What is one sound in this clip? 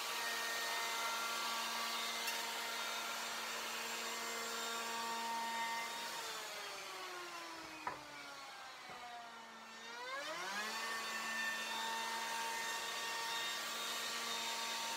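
A power router whines loudly at a high, steady pitch.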